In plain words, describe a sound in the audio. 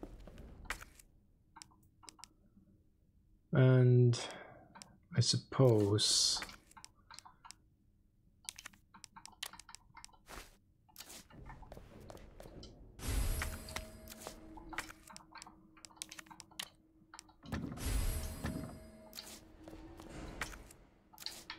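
Menu selection clicks tick softly, one after another.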